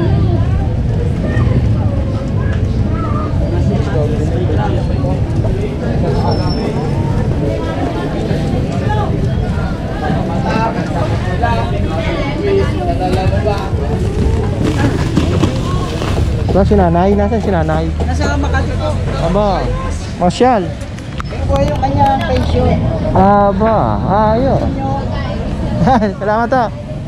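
Adults talk casually close by, with lively chatter around them.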